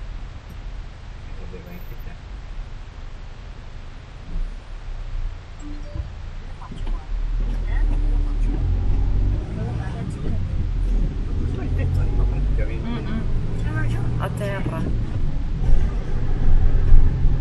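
A car engine hums steadily as the vehicle drives along a road.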